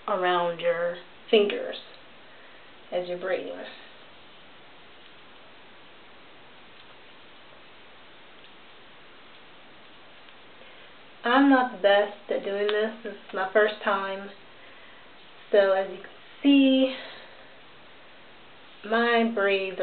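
A woman talks calmly and close by, pausing now and then.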